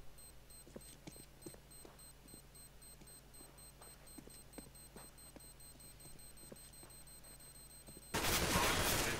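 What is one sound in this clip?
An electronic timer beeps in quick, regular short blips.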